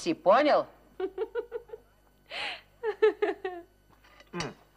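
A young woman laughs heartily.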